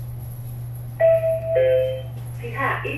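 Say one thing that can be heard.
An elevator chime rings.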